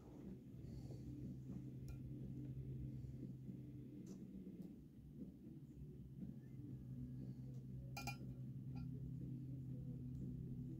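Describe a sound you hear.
A probe scrapes softly across a metal plate.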